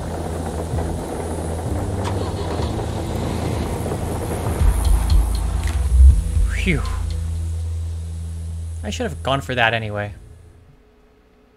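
A van engine rumbles, then drives away and fades.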